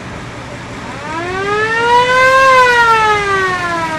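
A siren whoops up and then down.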